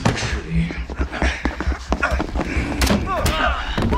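Men shout and scuffle.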